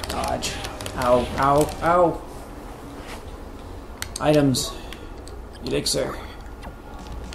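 Menu cursor blips chime as game options are selected.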